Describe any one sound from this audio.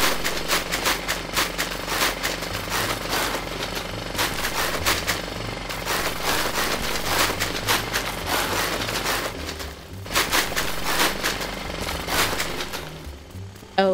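Loose earth and clods crunch and scatter as a tool breaks up the ground.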